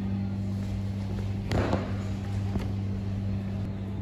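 A plastic bottle knocks into a plastic basket.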